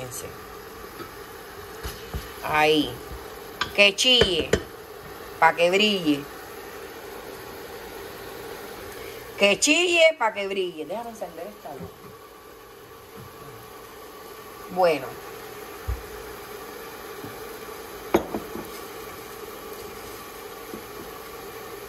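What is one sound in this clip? Onions sizzle gently in hot oil in a pot.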